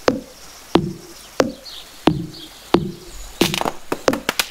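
An axe chops into wood with sharp, regular knocks.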